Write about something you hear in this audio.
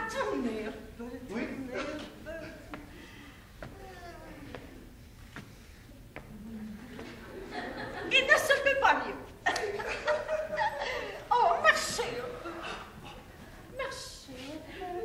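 A woman speaks theatrically.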